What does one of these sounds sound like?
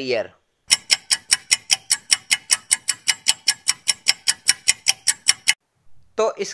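A timer ticks steadily and quickly.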